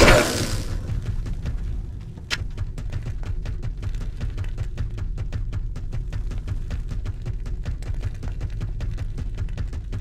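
Footsteps patter steadily.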